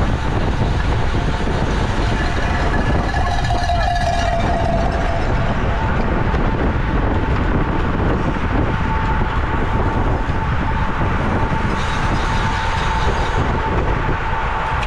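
Bicycle tyres whir on the road.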